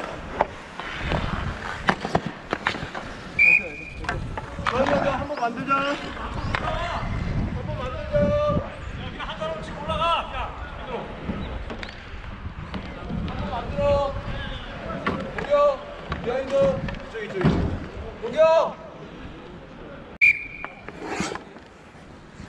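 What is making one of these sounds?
Inline skate wheels roll and scrape on a hard rink.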